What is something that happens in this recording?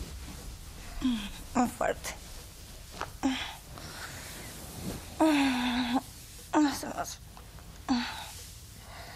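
A young woman moans and sighs softly up close.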